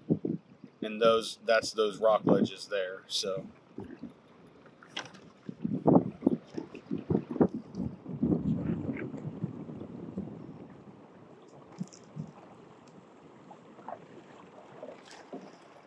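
Water laps against a small boat's hull as the boat glides along.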